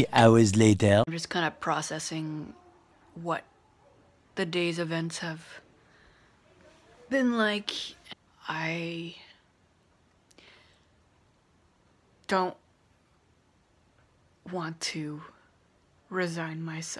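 A woman talks calmly and close to a microphone, with pauses.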